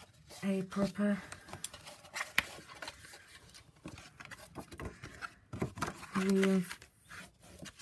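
A plastic scoring tool scrapes along a fold in the card.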